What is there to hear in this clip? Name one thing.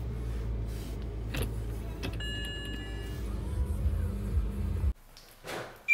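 A car engine hums at a low idle.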